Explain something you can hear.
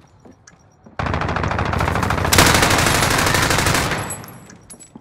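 An automatic rifle fires a rapid, loud burst.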